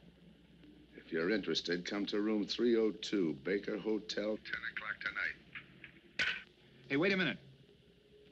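A middle-aged man speaks firmly into a telephone, close by.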